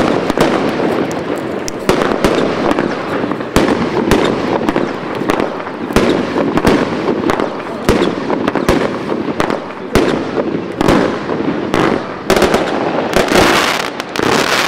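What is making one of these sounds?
Firework sparks crackle and fizz overhead.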